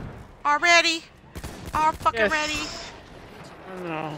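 Rifle shots crack in quick succession.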